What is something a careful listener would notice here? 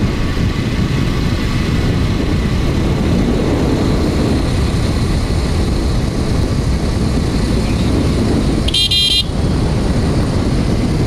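Wind buffets loudly against the microphone.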